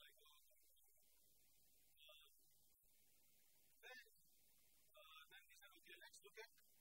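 A man speaks calmly, lecturing.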